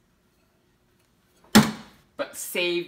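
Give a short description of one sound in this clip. A metal strainer clanks against a bowl.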